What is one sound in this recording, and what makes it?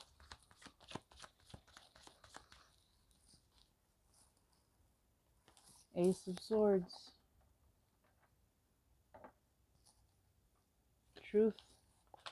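Playing cards rustle as a hand picks them up from a table.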